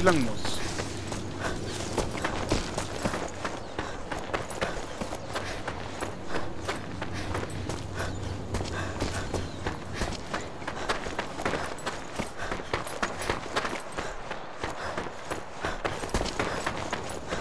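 Footsteps crunch on gravel and stone at a steady walking pace.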